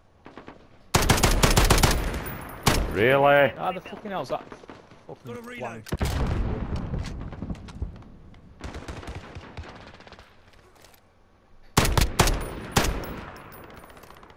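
A video game rifle fires in rapid bursts.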